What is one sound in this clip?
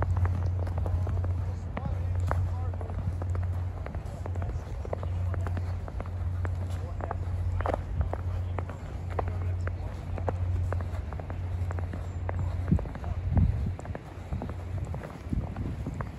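A fire crackles and pops close by.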